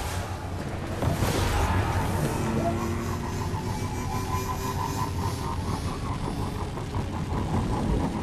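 A hover vehicle's engine hums and whooshes steadily.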